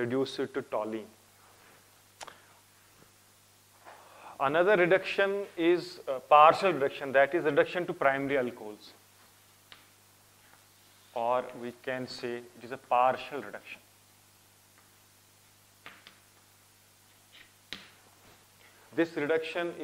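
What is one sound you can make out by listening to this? A man lectures with animation, close to a microphone.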